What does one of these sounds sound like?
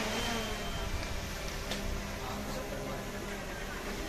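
A drone buzzes overhead.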